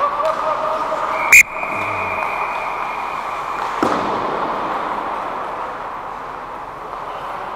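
Skate blades scrape and hiss across the ice close by.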